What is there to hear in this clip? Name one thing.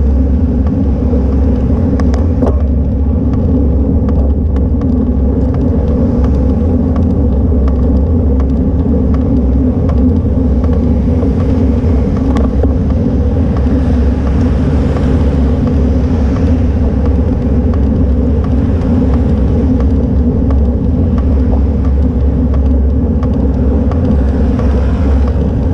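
Wind rushes steadily past a bicycle moving downhill.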